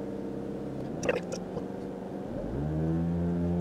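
A car engine idles steadily.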